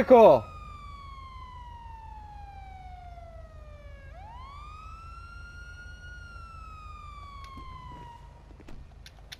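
A police siren wails with a slow rising and falling tone.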